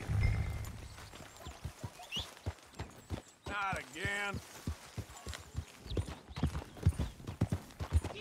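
A horse's hooves thud on a dirt trail.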